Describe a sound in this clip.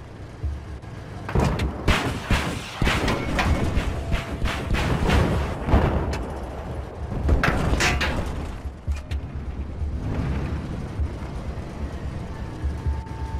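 A tank engine rumbles low.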